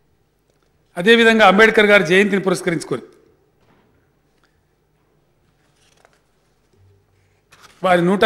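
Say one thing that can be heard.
A middle-aged man speaks formally into a microphone, with pauses.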